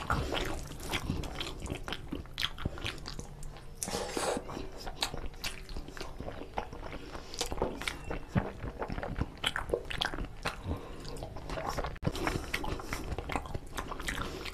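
A man chews food wetly and smacks his lips close to a microphone.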